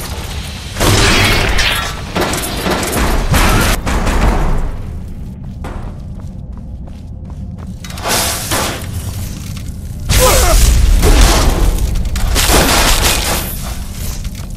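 Fire roars in bursts as flames strike a large metal machine.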